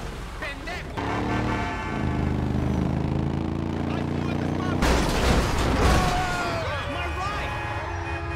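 A monster truck's engine roars loudly.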